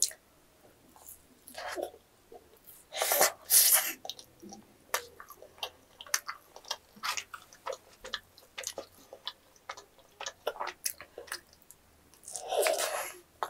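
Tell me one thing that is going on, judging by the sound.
A young woman bites into a crunchy snack close to a microphone.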